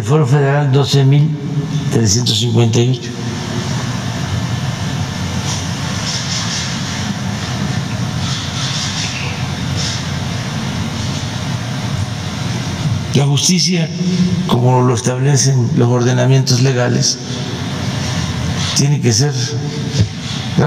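An elderly man speaks calmly through a microphone, in short bursts with pauses.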